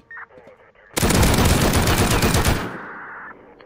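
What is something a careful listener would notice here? A machine gun fires a rapid, loud burst.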